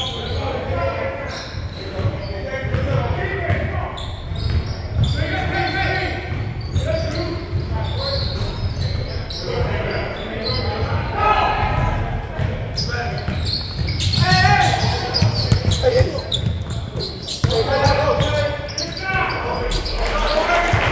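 Spectators talk and shout nearby.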